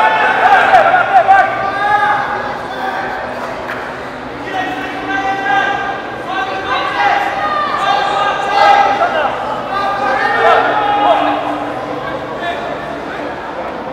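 A crowd of spectators shouts and calls out.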